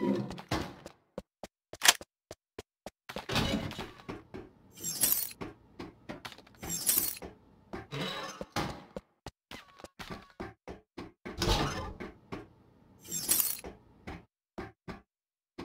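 Footsteps thud steadily on hard ground and metal stairs.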